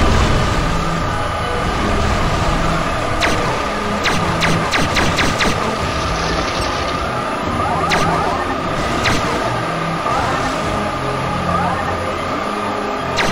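A futuristic craft hums and whooshes steadily as it speeds along.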